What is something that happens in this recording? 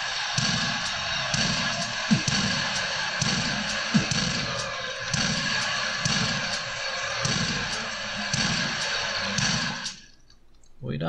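A shotgun fires in rapid blasts.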